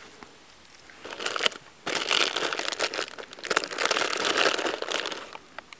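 A fox's paws scuff on dry dirt close by.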